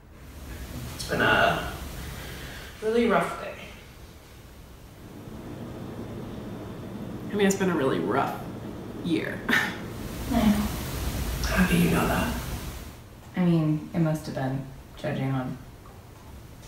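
A second young woman answers in a low, calm voice.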